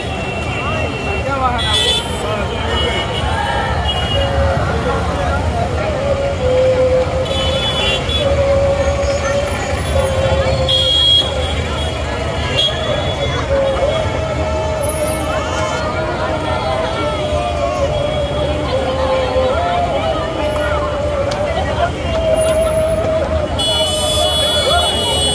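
A large crowd sings and chants together outdoors.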